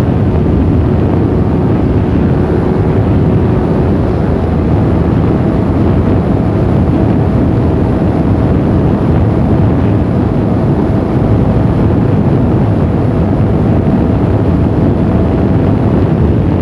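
A motorcycle engine roars steadily at high speed.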